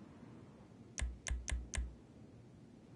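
Short game menu beeps sound as a selection changes.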